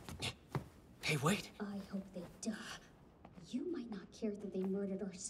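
A young woman gasps and speaks in a shaky, frightened voice.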